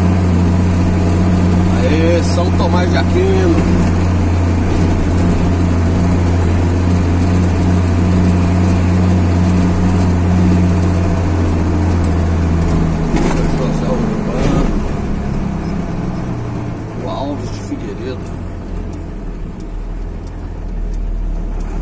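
A car engine drones steadily from inside the car, then drops lower and quieter as the car slows.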